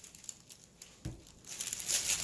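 A cardboard roll knocks softly on a table.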